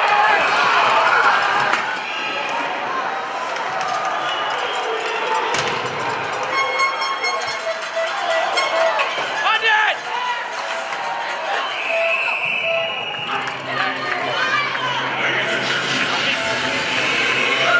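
A crowd cheers and shouts in a large echoing rink.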